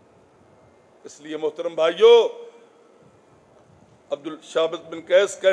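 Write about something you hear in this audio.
A middle-aged man speaks with emotion into a microphone, his voice amplified over a loudspeaker.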